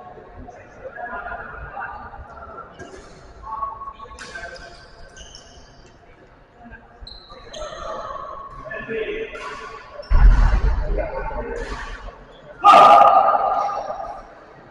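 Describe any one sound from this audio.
Men talk and call out at a distance in an echoing hall.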